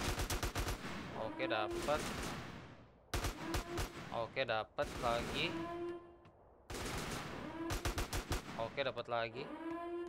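Rapid gunshots ring out in an echoing space.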